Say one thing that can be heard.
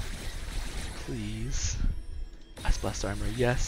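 Game menu chimes sound as an upgrade is picked.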